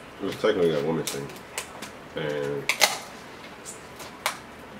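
Crab shells crack and snap between fingers.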